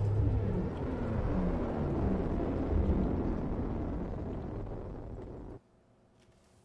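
A deep, steady rumbling drone fades slowly and then cuts off.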